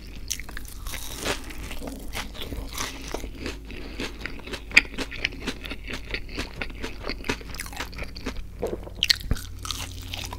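A man bites into crispy food with a loud crunch.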